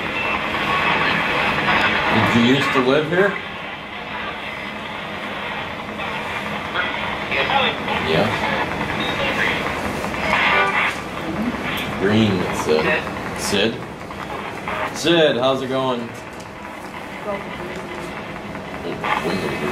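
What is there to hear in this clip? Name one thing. Adult men talk among themselves.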